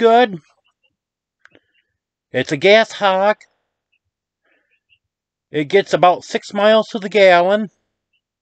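A man speaks close to a microphone in short, animated bursts with pauses between.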